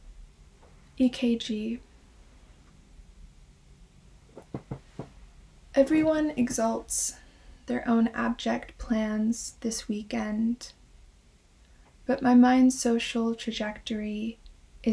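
A young woman reads aloud calmly and close by.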